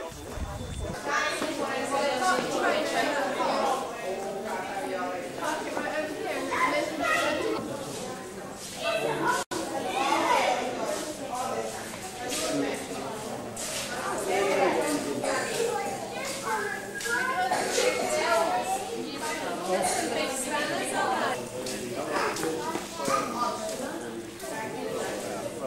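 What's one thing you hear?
A crowd of men, women and children chatters in a large echoing hall.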